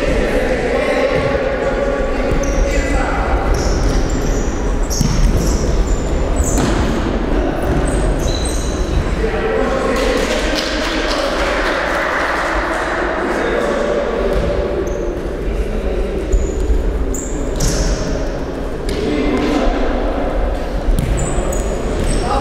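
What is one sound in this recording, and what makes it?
A ball thuds when kicked.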